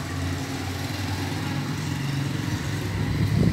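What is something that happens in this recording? A motorcycle engine hums as the motorcycle rides past outdoors.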